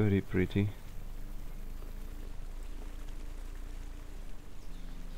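A stream trickles gently.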